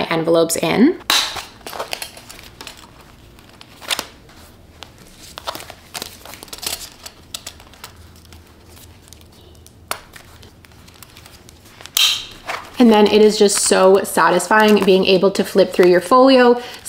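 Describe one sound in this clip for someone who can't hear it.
Plastic sleeves rustle and crinkle as they are handled.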